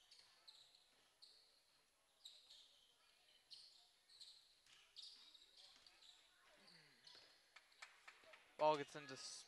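Sneakers squeak sharply on a wooden floor in a large echoing gym.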